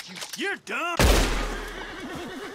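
A gunshot cracks loudly outdoors.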